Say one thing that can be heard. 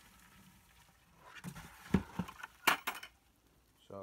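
A plastic bucket knocks and scrapes as it is handled.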